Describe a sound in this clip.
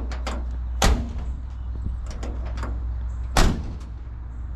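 A hand knocks on a truck's metal door.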